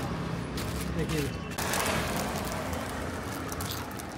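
A young man crunches a crisp snack.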